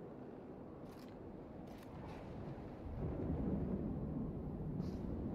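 Leaves rustle as someone pushes through a bush.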